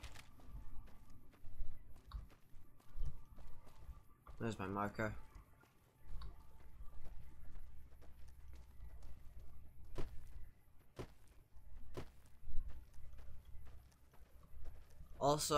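Footsteps crunch over dry, stony ground.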